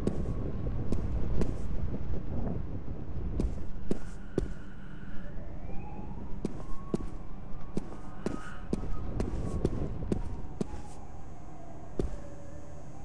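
Footsteps thud on hard ground at a quick pace.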